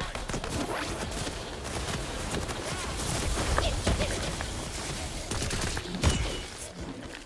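A game gun fires rapid shots.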